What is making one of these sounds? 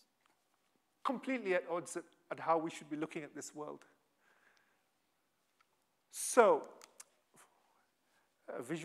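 A man lectures calmly through a microphone, with pauses.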